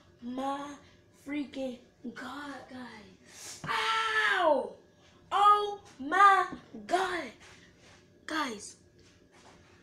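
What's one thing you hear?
A boy sings loudly nearby.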